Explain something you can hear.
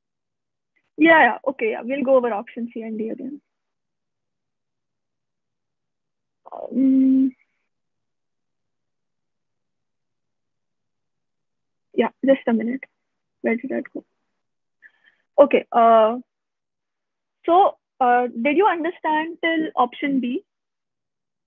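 A young woman speaks calmly through a microphone in an online call, in short bursts with pauses.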